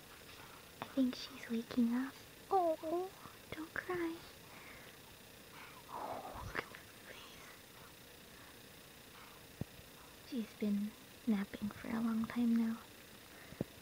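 A newborn baby grunts and whimpers softly in sleep, close by.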